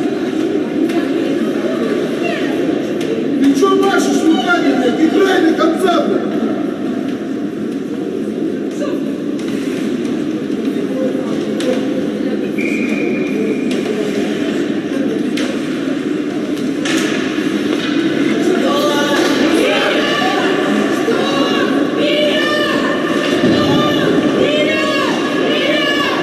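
A crowd of spectators murmurs and chatters in a large echoing arena.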